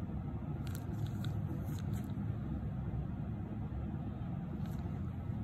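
Latex-gloved fingers rub and squeak faintly against skin.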